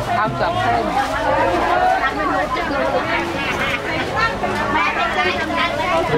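Many voices of men and women chatter in a busy outdoor crowd.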